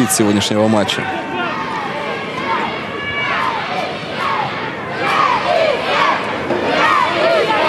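Men shout to each other outdoors.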